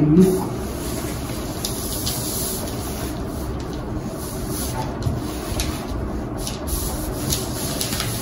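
Scissors snip through paper.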